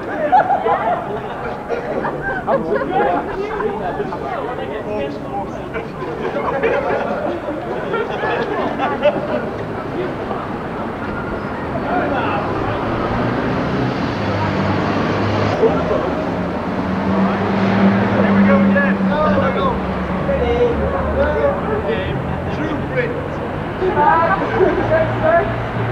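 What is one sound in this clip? Young men talk and laugh nearby outdoors.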